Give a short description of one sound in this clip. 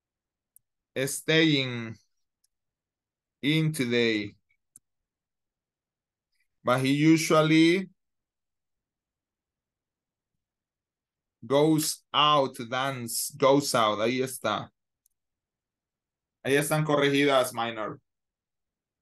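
A man speaks calmly in short phrases over an online call, with pauses between them.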